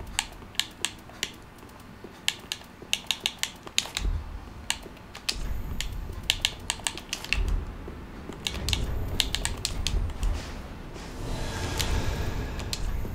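Menu selections tick with short, sharp clicks.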